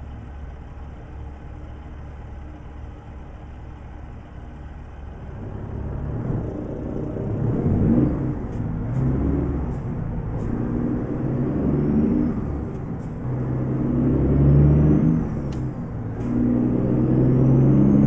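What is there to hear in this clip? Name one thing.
A truck engine rumbles steadily and revs up as the truck gathers speed.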